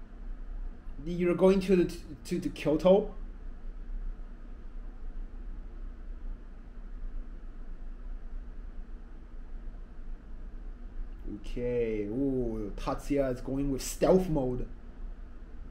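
A young man talks briefly and casually, close by.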